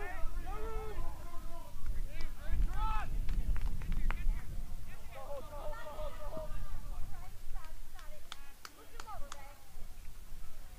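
Young male players shout and call out across an open field.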